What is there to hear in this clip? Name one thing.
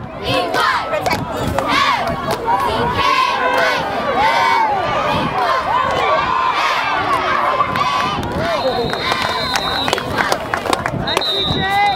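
Young girls chant and cheer loudly together, close by outdoors.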